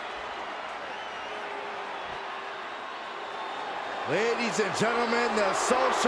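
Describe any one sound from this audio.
A large crowd cheers and roars in a huge echoing arena.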